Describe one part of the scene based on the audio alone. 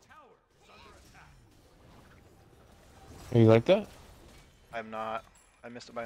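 Blades clash and spells burst in a fight.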